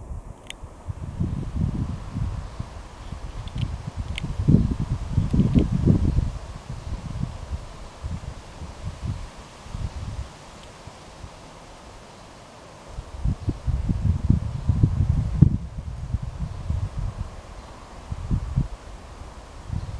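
Wind blows in strong gusts and rumbles outdoors.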